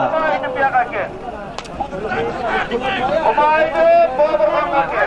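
A crowd of men shout and talk outdoors.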